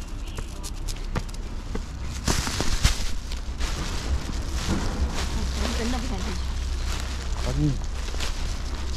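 Footsteps tap on paved ground outdoors.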